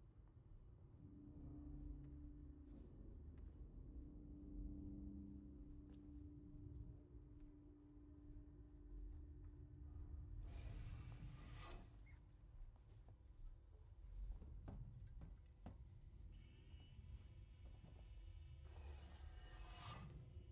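A low mechanical hum drones steadily.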